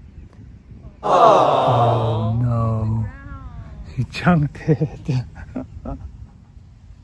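A woman cries out loudly, then talks with animation.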